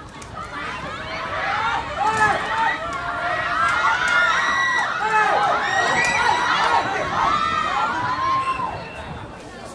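Young women shout and call out excitedly outdoors.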